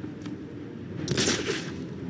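A grappling line whooshes and zips.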